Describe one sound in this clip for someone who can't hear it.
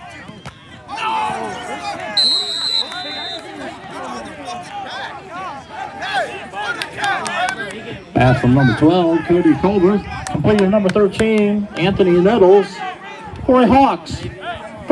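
A crowd cheers loudly after a play.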